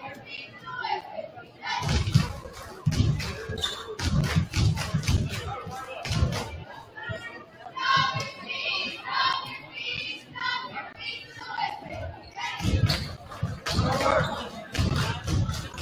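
Young players in a huddle shout together.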